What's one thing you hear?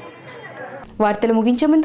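A woman speaks loudly close by.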